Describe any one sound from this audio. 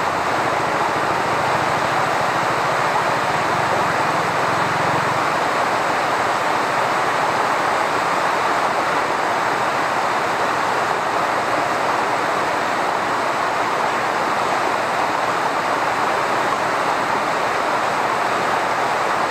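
A waterfall rushes steadily, heard from a distance.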